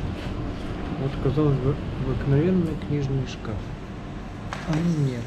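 A woman talks nearby with animation.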